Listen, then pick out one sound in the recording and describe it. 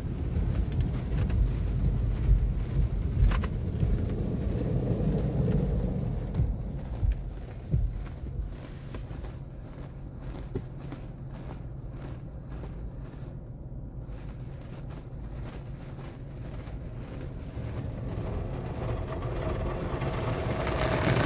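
Water sprays and drums against a car's windows.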